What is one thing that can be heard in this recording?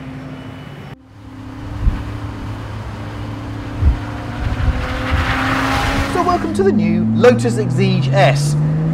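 A sports car engine hums and rises as the car accelerates.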